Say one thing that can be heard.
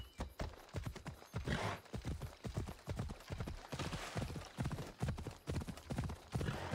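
Horse hooves thud rhythmically on the ground.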